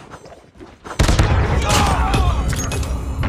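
An explosion bursts with a heavy boom.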